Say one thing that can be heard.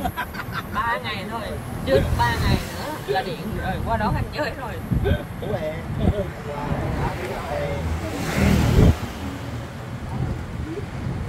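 A small electric vehicle rumbles steadily along the road in the open air.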